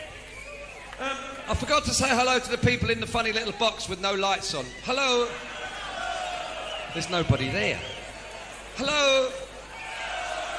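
A man speaks loudly into a microphone over a loudspeaker, his voice echoing in a large hall.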